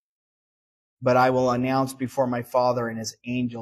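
A middle-aged man speaks steadily through a microphone.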